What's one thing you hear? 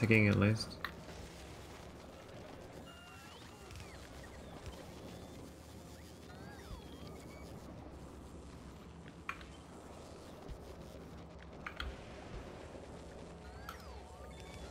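Short game clicks and beeps sound now and then.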